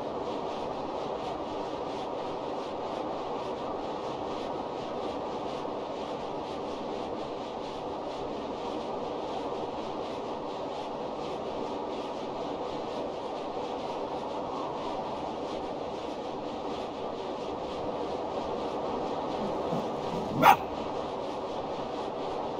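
Paws crunch steadily through snow.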